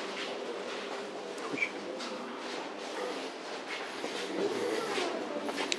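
People murmur and talk quietly nearby in an echoing indoor space.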